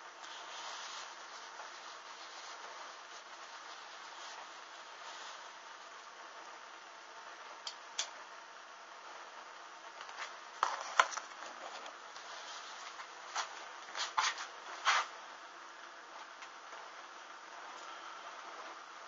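A small flame flickers and crackles softly on burning fabric.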